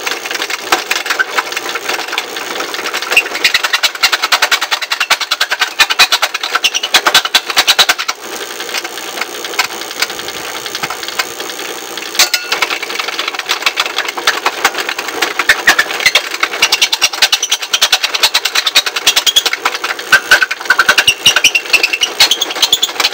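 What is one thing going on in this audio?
A small grinding machine whirs and crackles as it grinds against metal.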